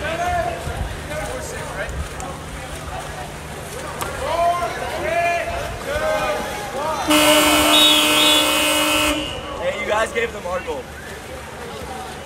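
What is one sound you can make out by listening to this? Water splashes as swimmers thrash about.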